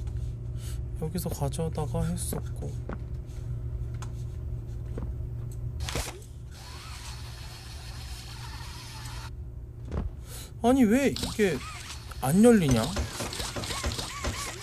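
A young man talks and exclaims with animation close to a microphone.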